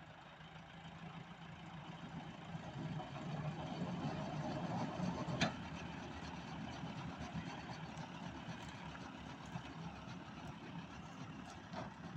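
A tractor-driven straw chopper whirs as it chops wheat straw.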